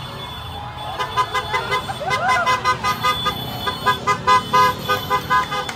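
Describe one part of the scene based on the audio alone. People clap their hands rhythmically.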